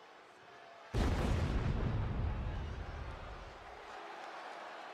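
Pyrotechnic flames burst with a deep roar.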